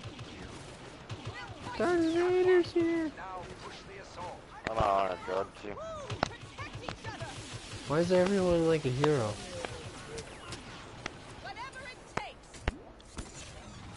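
Laser guns fire in quick bursts.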